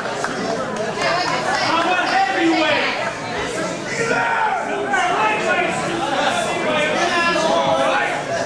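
A small crowd of spectators shouts and chatters indoors.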